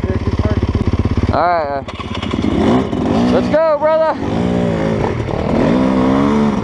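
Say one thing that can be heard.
A motorbike engine revs loudly close by, rising and falling in pitch.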